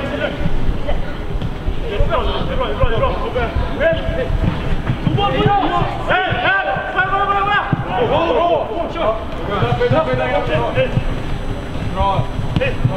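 Young women shout to each other across an open pitch.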